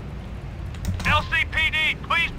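A police siren yelps rapidly.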